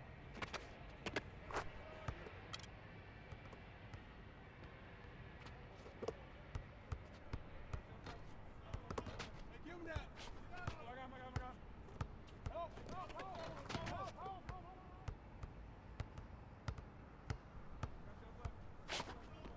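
A basketball bounces on hard court.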